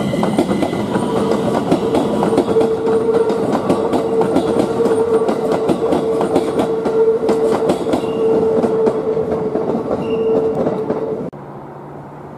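An electric train motor whines steadily.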